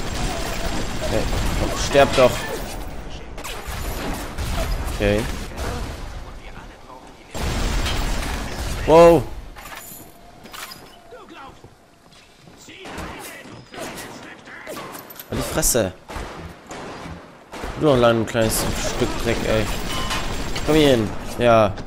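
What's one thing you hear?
A machine gun fires rapid bursts at close range.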